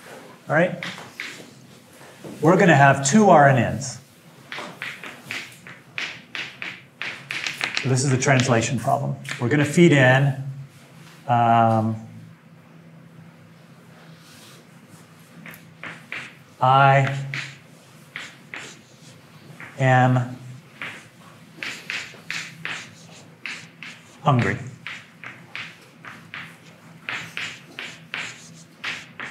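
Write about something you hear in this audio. A man speaks calmly, explaining, from a short distance.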